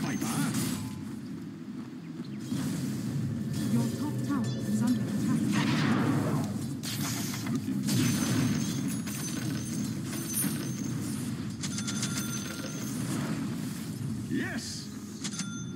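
Blows land with sharp thuds in a fight.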